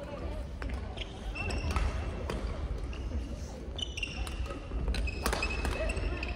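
Shoes squeak sharply on a hard floor.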